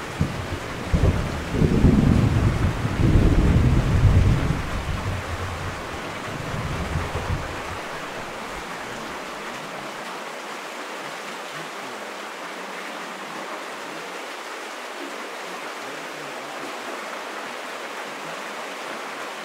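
Rain patters steadily against a window pane.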